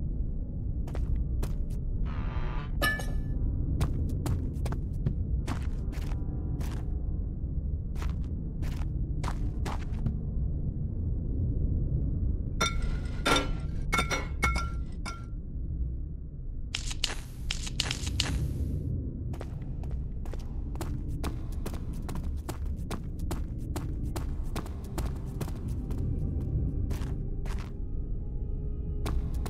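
Footsteps thud on a stone floor at a slow walking pace.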